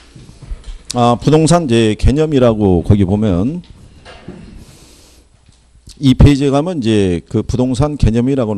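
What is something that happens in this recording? A middle-aged man speaks with animation through a microphone, heard over a loudspeaker.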